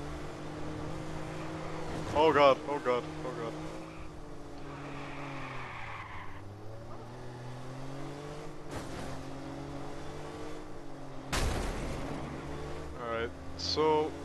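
A sports car engine hums steadily as the car speeds along.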